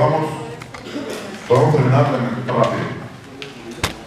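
A man speaks into a microphone through a loudspeaker in an echoing room.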